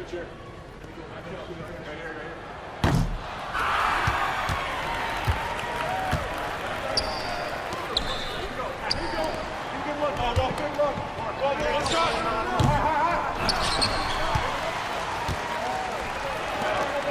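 A crowd cheers in a large echoing arena.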